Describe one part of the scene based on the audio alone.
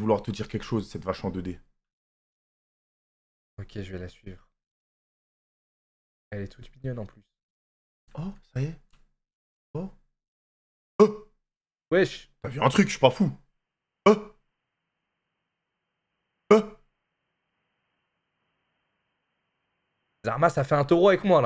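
A young man talks with animation through a microphone, in short bursts.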